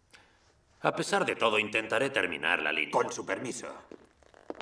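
An elderly man speaks firmly up close.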